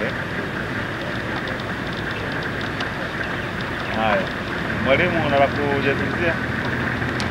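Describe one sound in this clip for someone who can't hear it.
A man speaks with animation outdoors.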